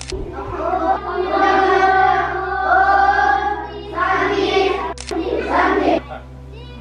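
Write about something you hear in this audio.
A group of children sing together.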